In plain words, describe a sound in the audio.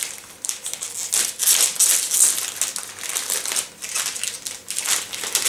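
Plastic wrapping crinkles and rustles close by as it is handled.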